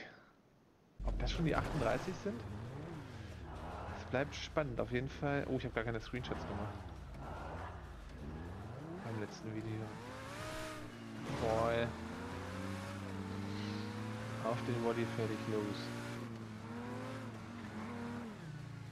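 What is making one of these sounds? A sports car engine revs and roars, rising and falling in pitch.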